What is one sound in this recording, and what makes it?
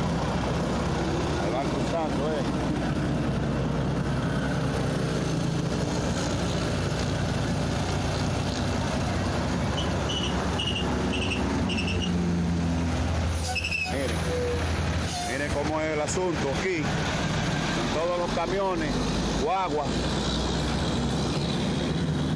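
Traffic roars past on a highway outdoors.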